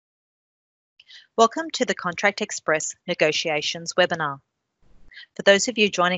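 A woman speaks calmly into a microphone, as if presenting over an online call.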